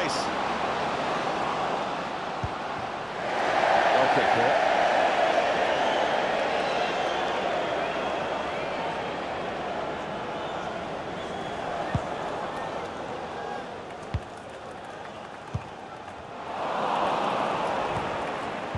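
A stadium crowd roars steadily, swelling loudly at times.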